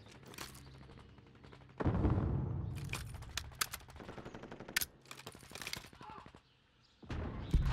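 A machine gun's metal parts click and clack as it is reloaded.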